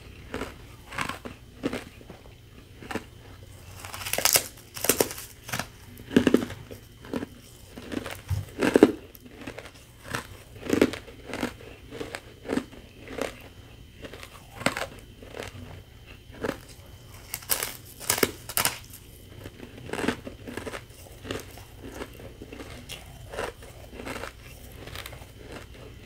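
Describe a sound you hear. Ice crunches loudly close to a microphone as a woman bites and chews it.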